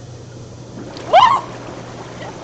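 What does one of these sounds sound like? A young woman squeals loudly.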